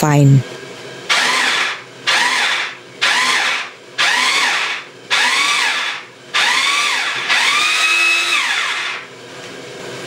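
An electric chopper whirs in short bursts, each spinning up quickly.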